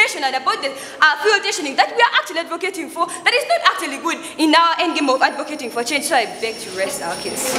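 A young woman speaks passionately into a microphone.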